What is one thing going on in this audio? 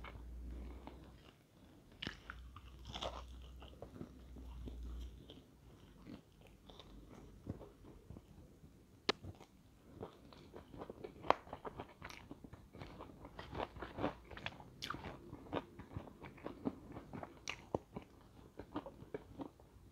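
Crispy chicken batter crackles as fingers tear it apart.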